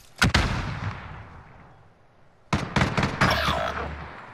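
Gunshots fire in short bursts, echoing outdoors.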